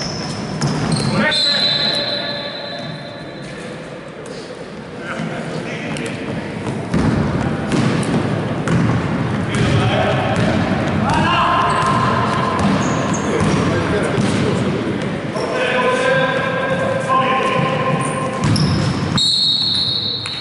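Sneakers squeak sharply on a hardwood court in an echoing hall.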